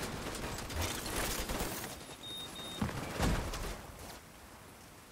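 Gunfire crackles rapidly.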